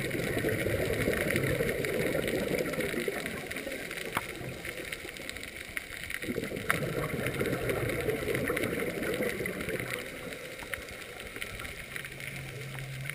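Air bubbles from a diver's breathing gurgle and rumble underwater in bursts close by.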